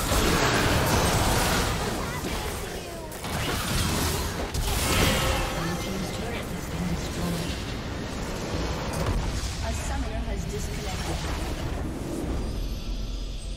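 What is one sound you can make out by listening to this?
Spell effects whoosh and crash in a busy game battle.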